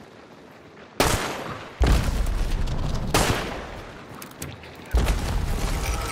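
Gunshots bang loudly.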